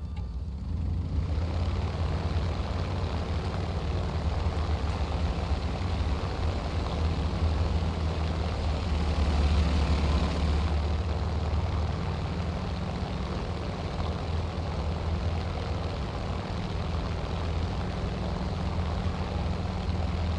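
Tyres rumble over rough ground.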